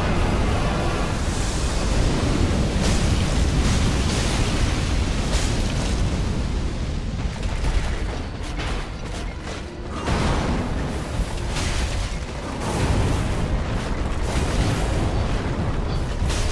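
A giant armoured beast's heavy limbs thud and crash against stone.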